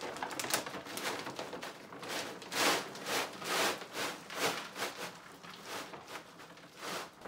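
A paper bag crinkles and rustles.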